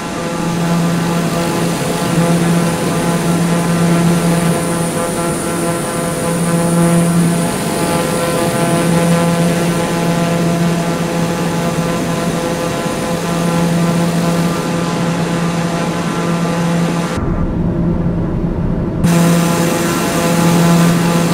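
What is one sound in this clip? A propeller plane's turboprop engine drones steadily with a humming whine.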